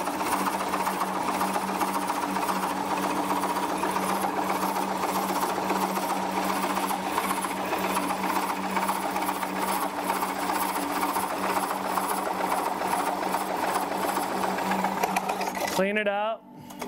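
A chisel scrapes and shaves spinning wood.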